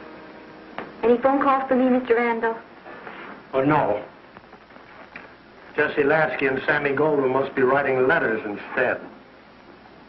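A middle-aged man speaks nearby.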